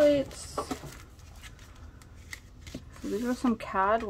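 Cardboard sleeves rustle and scrape as hands handle them.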